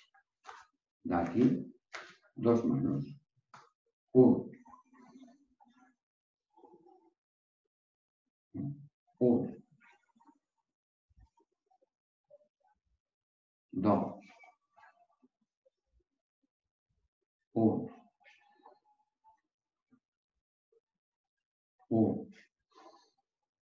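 A man calls out short, loud counts at intervals.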